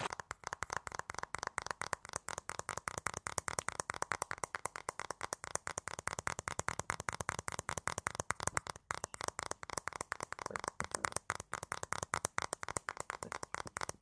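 Fingertips tap and rub together rapidly, very close to a microphone.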